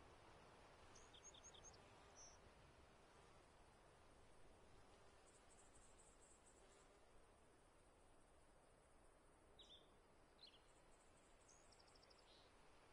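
Short, bright electronic effect sounds chirp on and off.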